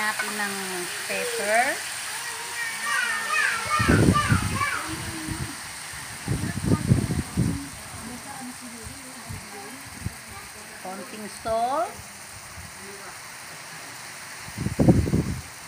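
Meat sizzles in a hot pan.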